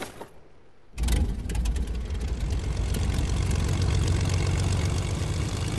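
A small plane engine starts and drones steadily.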